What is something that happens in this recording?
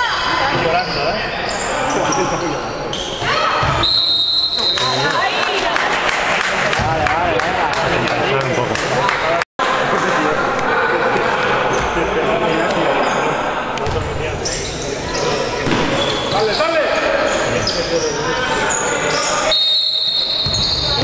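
A crowd of spectators cheers and chatters.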